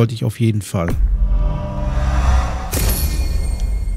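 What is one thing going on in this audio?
A game menu sound effect swells and rings out as an upgrade is bought.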